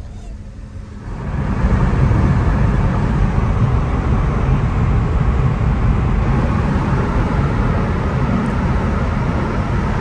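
Tyres roar loudly on the road inside an echoing tunnel.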